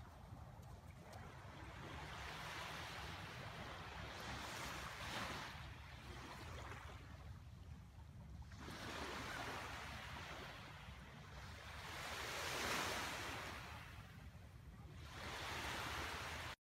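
Waves wash onto a beach in slow, rolling surges.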